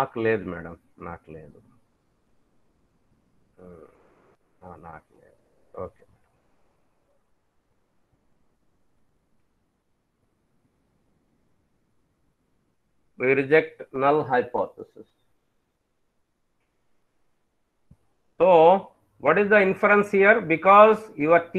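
A man speaks calmly through a microphone, heard as in an online call.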